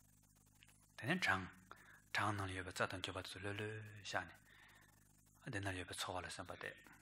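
A man speaks calmly and slowly into a microphone.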